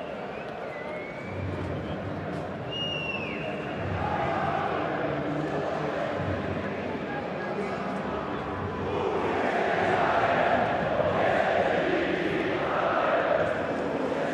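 A large stadium crowd roars and chants.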